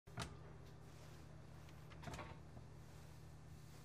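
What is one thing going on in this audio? A cupboard door knocks open.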